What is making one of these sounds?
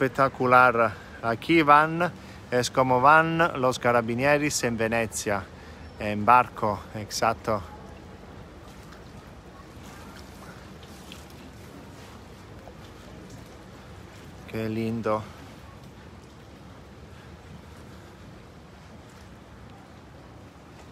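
Water laps gently against a canal edge.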